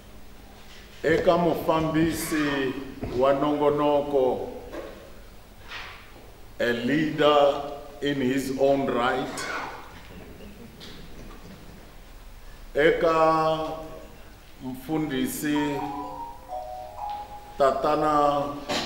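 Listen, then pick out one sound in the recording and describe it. An older man speaks calmly into a close microphone, pausing between phrases.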